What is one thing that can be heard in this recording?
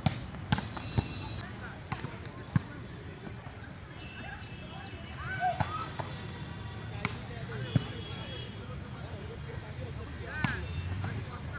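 A volleyball is slapped hard by hand, with sharp smacks now and then.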